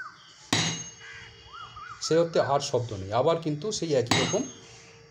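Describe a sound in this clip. A tuning fork is struck sharply.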